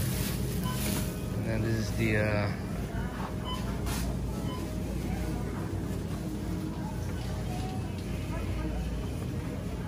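A shopping cart rattles as it rolls.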